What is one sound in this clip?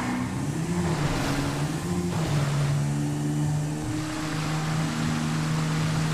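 A motorbike engine hums steadily, shifting up and down in pitch.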